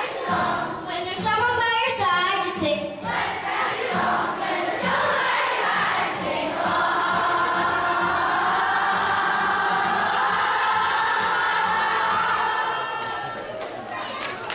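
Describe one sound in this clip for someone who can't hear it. A choir of young children sings together, heard through a microphone in a large hall.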